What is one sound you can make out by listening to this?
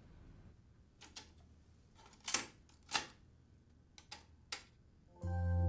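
Buttons on a cassette deck click and clack as a tape is loaded.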